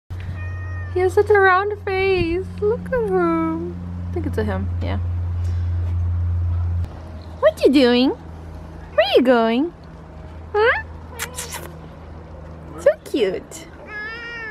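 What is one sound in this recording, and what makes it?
A cat meows repeatedly, close by.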